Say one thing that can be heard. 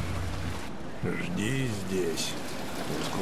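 An elderly man speaks briefly in a low, calm voice, up close.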